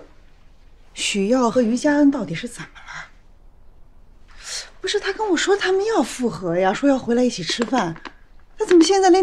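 An older woman speaks with concern, close by.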